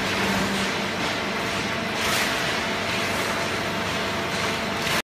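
Paper scraps rustle as a man gathers them.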